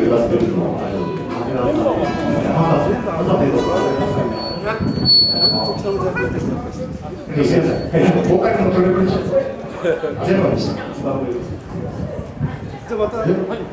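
A man strums an acoustic guitar through loudspeakers.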